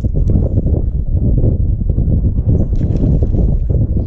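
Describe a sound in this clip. A fish splashes into the water.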